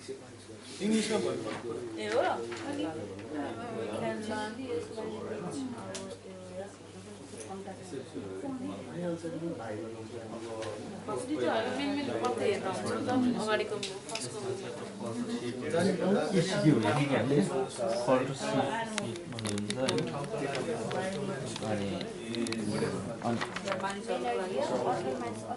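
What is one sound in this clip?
Several young people talk together nearby in a small room.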